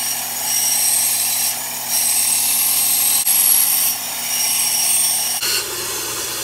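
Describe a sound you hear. A band saw blade cuts through wood.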